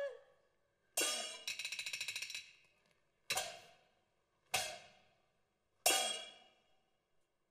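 Sharp percussion claps strike several times.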